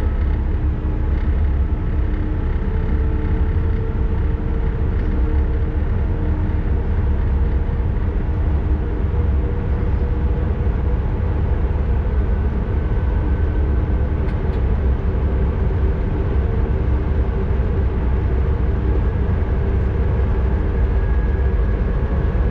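A train rumbles steadily along the rails with a low drone.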